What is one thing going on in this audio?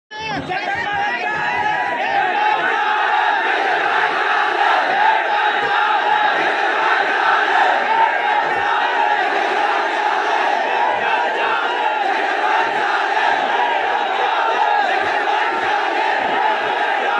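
A man speaks forcefully through a microphone and loudspeakers.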